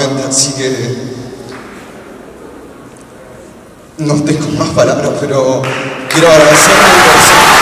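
A young man speaks emotionally into a microphone, amplified in a large echoing hall.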